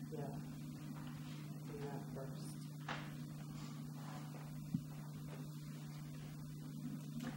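Paper rustles as sheets are handled and shuffled.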